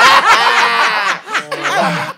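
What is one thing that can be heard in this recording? Several young adults laugh loudly together.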